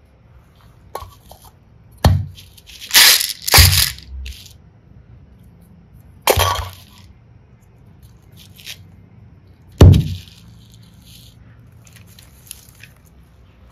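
Hard plastic toys click and tap as a hand sets them down.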